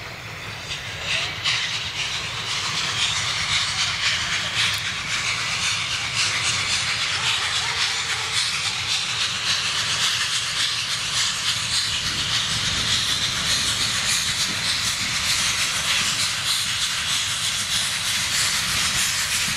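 A steam locomotive chuffs in the distance, slowly drawing nearer and growing louder.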